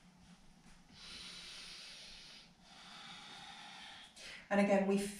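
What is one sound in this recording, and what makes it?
A woman breathes out slowly and deeply.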